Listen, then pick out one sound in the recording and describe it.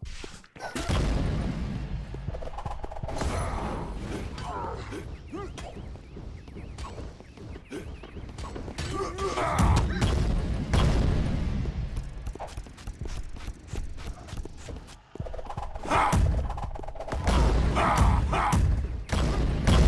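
A large monster thuds and slams as it spins in attacks.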